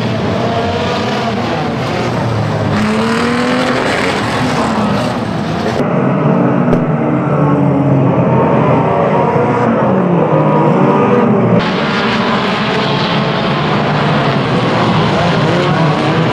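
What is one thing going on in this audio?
Many car engines roar and rev loudly.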